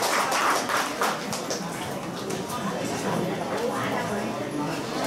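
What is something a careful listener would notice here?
A crowd of men and women chatter nearby in a lively babble.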